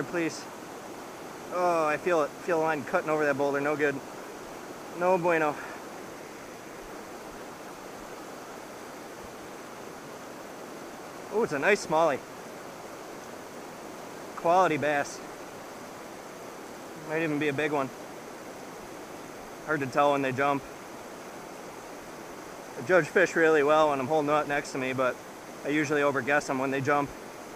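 A river rushes and churns steadily.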